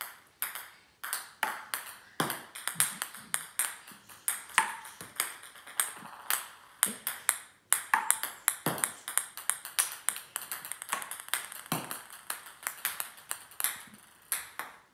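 A ping-pong ball bounces repeatedly on a hard wooden floor.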